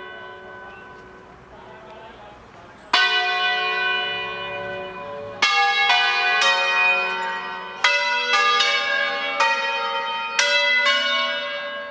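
A large bell rings loudly, each strike ringing out and slowly fading.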